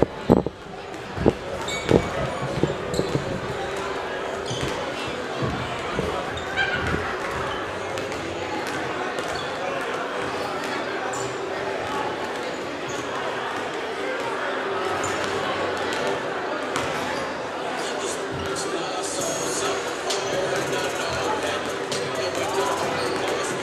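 Basketballs bounce on a hardwood floor, echoing in a large hall.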